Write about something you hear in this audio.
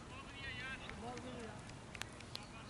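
A man calls out at a distance across an open field.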